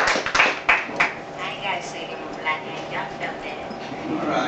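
A young woman speaks into a microphone to a crowd.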